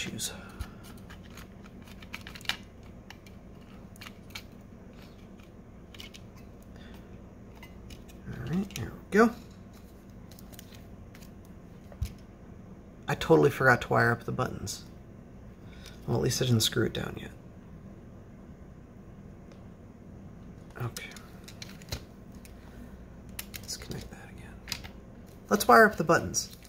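Small plastic parts click and tap as hands handle them.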